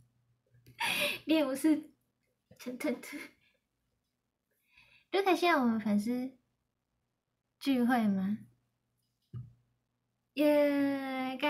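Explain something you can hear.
A young woman speaks with animation and laughs, close to a microphone.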